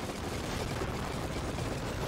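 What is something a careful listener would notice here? A game explosion booms.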